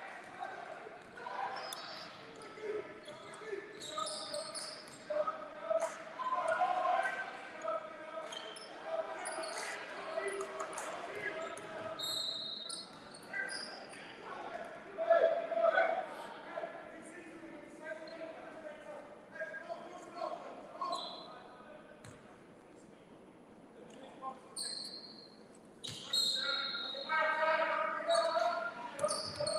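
Young men shout and call to each other in a large echoing gym.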